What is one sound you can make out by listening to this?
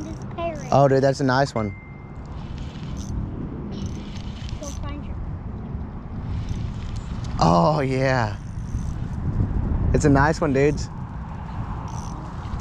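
A fishing reel whirs as its handle is cranked.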